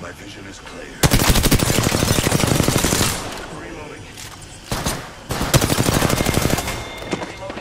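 Rapid gunfire rattles loudly in short bursts.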